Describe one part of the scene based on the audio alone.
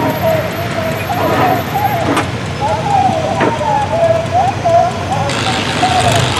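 Old tractor engines rumble and chug nearby.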